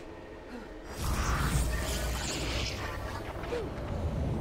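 A portal whooshes and roars loudly.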